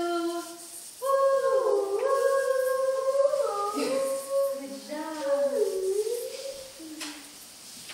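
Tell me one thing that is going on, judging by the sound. A woman sings a simple tune.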